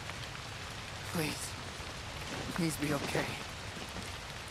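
A young man speaks softly and pleadingly.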